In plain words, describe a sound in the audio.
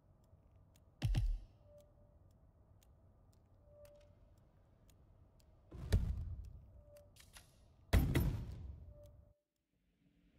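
Short whooshing menu sounds play as pages switch.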